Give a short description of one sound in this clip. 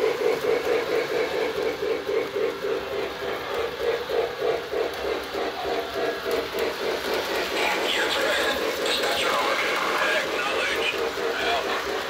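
A toy train rattles and clicks steadily along its track.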